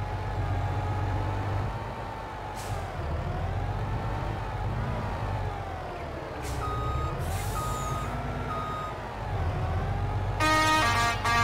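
A truck engine hums and rises and falls in pitch.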